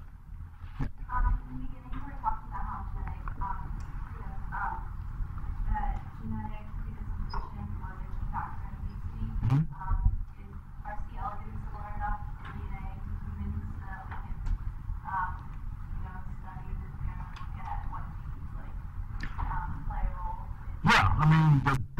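A young woman speaks calmly at a distance in a room.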